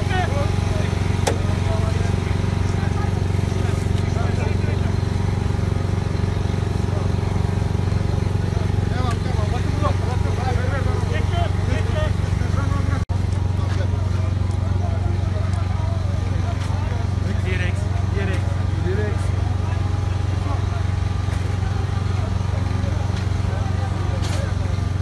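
Several men talk and call out to one another close by.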